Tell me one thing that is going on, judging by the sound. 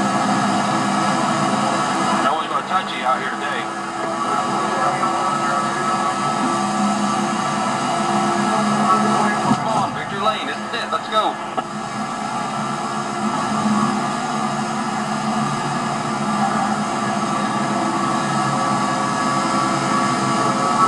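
A stock car V8 engine roars at full throttle from a television speaker.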